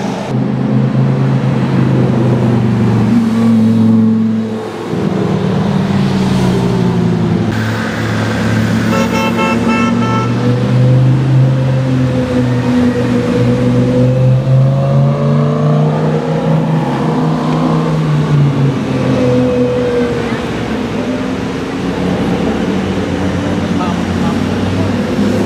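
A sports car engine roars loudly close by, revving up and down.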